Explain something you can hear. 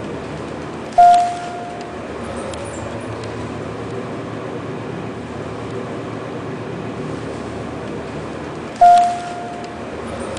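An elevator bell dings brightly.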